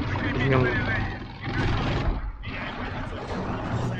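A tank engine rumbles and its tracks clank.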